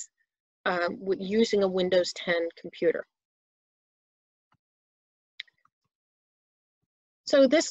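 A woman speaks calmly through a microphone on an online call.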